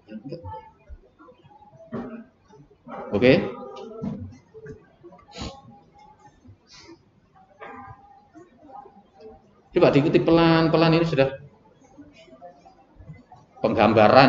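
A man talks calmly and haltingly, close to a microphone.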